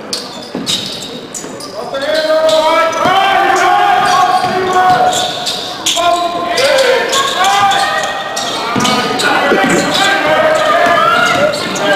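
A basketball bounces on a wooden court.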